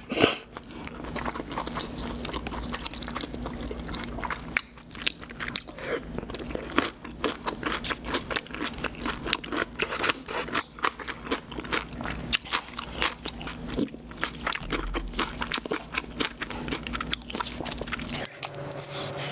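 A woman chews and smacks food close to a microphone.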